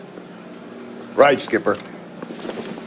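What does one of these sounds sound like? A younger man answers briefly.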